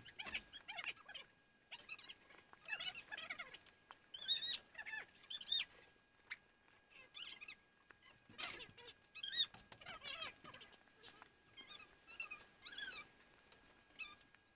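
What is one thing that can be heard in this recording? Thread squeaks as it is pulled through a stitched leather ball.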